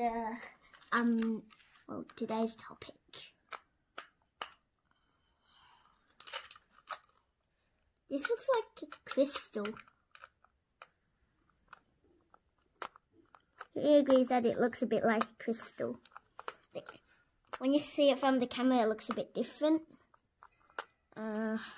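A screwdriver turns small screws in plastic with faint clicks.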